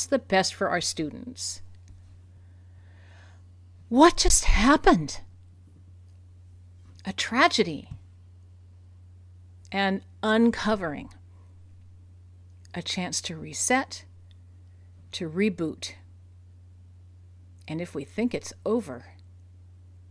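A middle-aged woman speaks calmly and thoughtfully into a microphone, with long pauses.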